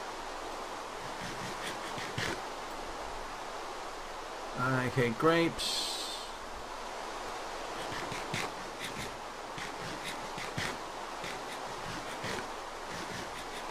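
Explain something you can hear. Crunchy munching sounds repeat in short bursts.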